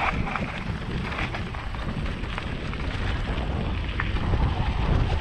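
Bicycle tyres rumble and crunch over a rough dirt track.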